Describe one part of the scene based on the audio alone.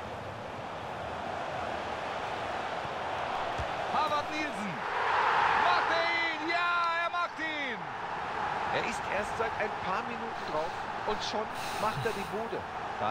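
A stadium crowd roars, swelling louder.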